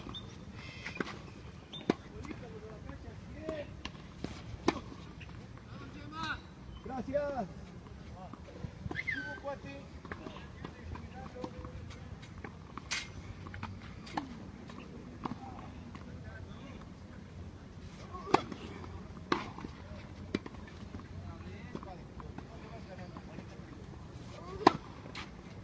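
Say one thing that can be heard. Tennis balls bounce on a clay court.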